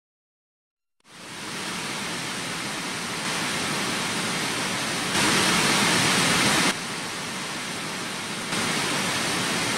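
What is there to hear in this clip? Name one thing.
Small electric motors whir loudly and steadily, getting louder and softer in sudden steps.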